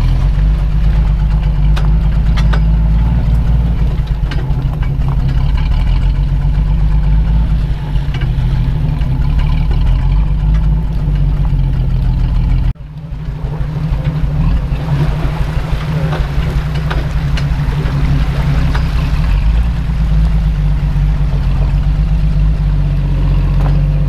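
A pickup truck engine rumbles low and steady nearby.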